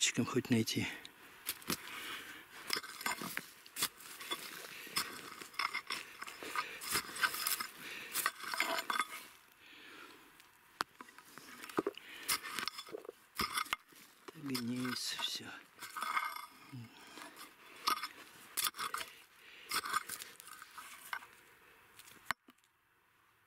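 A pick strikes and scrapes into soil and stones, thudding and crunching.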